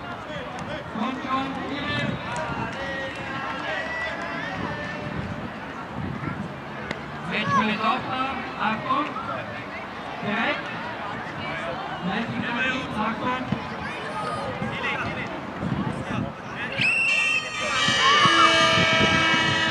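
Children shout and call out across an open sports field outdoors.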